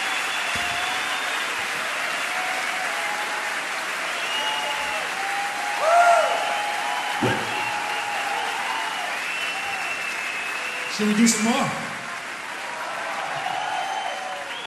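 A large crowd cheers and roars loudly in a big echoing hall.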